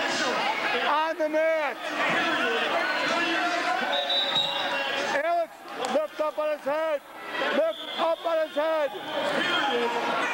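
A man shouts encouragement close by.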